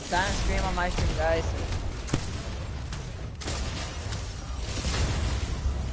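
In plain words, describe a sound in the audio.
Weapons fire in rapid bursts in a video game.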